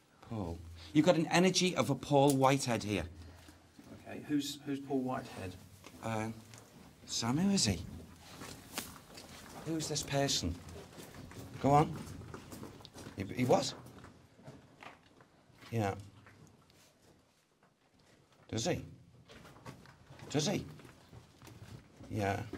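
A man speaks calmly and seriously nearby.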